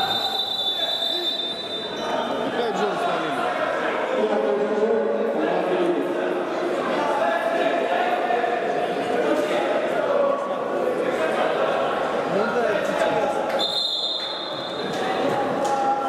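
A futsal ball is kicked across a wooden court.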